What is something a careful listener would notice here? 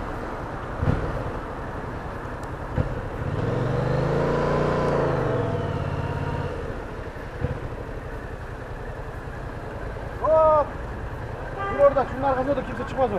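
Wind rushes past outdoors.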